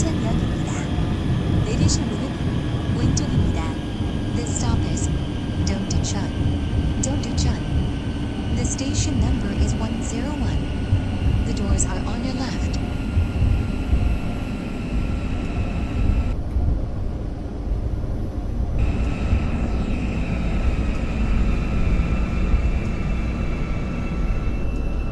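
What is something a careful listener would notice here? A train car rumbles steadily along the tracks.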